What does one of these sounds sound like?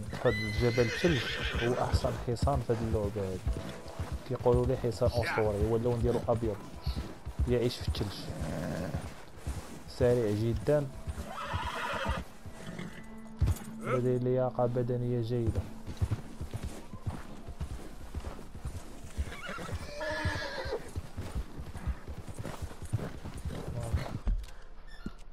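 A horse's hooves crunch through deep snow.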